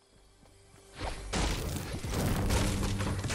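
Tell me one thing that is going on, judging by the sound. A pickaxe chops hard at wood with repeated knocks.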